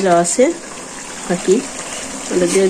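Fried pieces of fish drop into a pan with a soft thud.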